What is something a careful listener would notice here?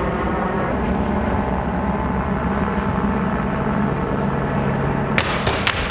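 A helicopter drones steadily overhead.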